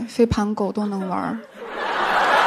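A young woman speaks into a microphone on a stage.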